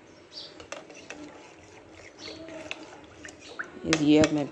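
A spoon clinks against a glass while stirring.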